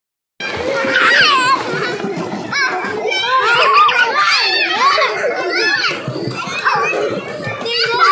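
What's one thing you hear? Young children shout and squeal excitedly close by.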